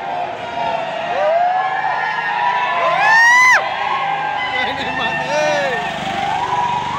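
Young men whoop and shout loudly.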